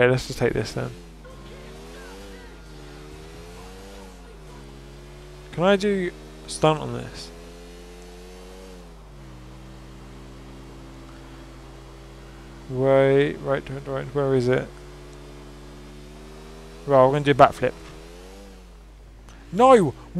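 A motorcycle engine roars and revs up and down as the bike speeds along.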